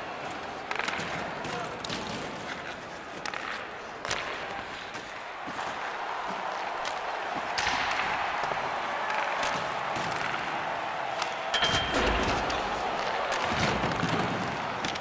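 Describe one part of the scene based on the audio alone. A puck clacks against hockey sticks.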